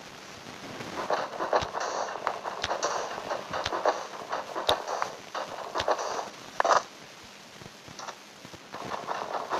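Short crunching thuds of blocks being dug and placed repeat in a video game.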